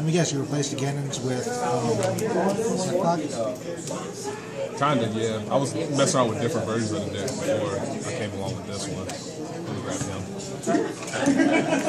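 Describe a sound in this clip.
Playing cards slap softly as they are shuffled by hand.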